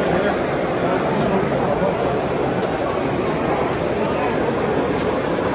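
A crowd of people chatters steadily in a large echoing hall.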